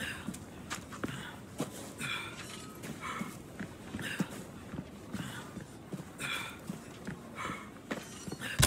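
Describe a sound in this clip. A man breathes heavily.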